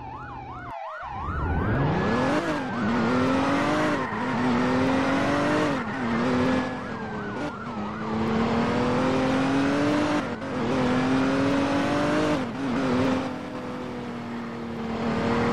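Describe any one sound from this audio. A car engine revs hard and shifts up through the gears.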